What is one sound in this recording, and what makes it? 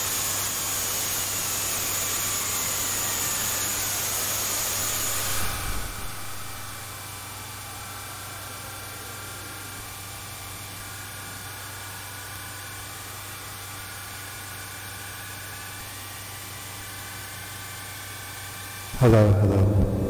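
An electronic synthesizer drones with slowly gliding tones.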